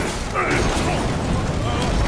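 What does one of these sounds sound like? A car crashes and tumbles over the ground.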